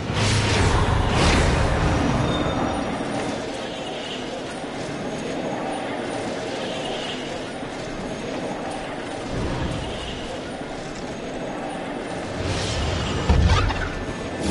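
Electric energy crackles and whooshes in short bursts.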